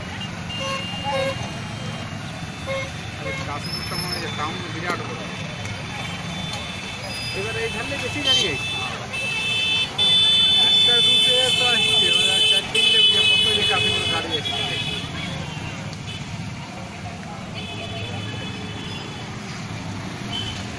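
Horns honk from the traffic.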